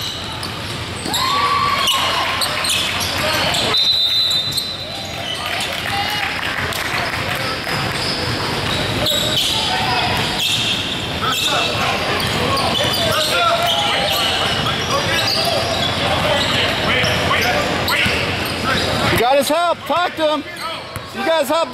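A crowd of players and spectators chatter and shout in a large echoing gym.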